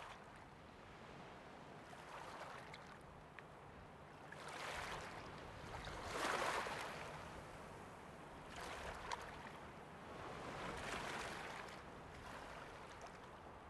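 Waves wash and swell in slow surges.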